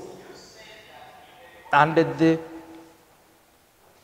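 A man speaks calmly, as if teaching.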